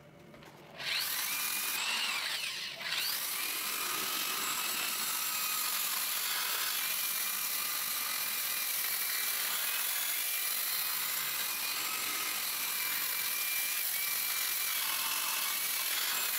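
A spinning abrasive brush scours wood with a rough hiss.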